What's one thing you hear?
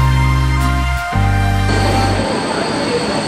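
A train rolls past close by.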